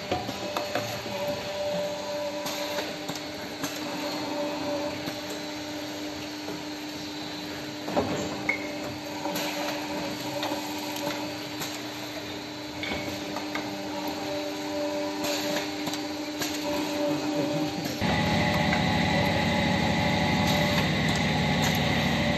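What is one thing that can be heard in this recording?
A machine clicks and clunks at intervals.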